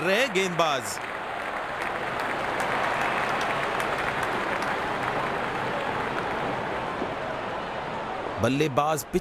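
A crowd cheers and murmurs in a large stadium.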